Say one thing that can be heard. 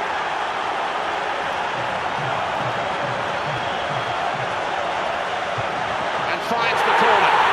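A stadium crowd murmurs steadily.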